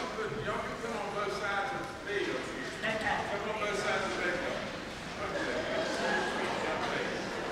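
Many people chatter at once in a large echoing hall.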